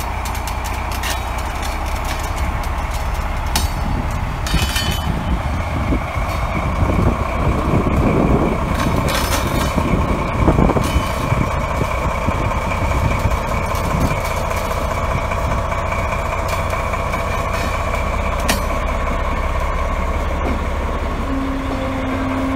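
Train wheels clatter and squeal over the rails.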